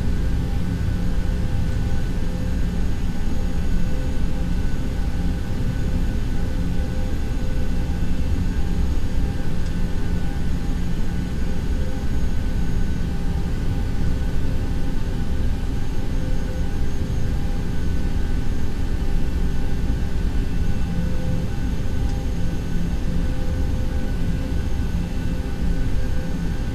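Jet engines hum steadily while an airliner taxis.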